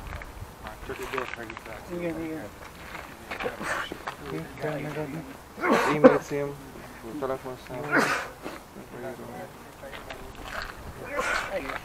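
A man talks close by, with animation.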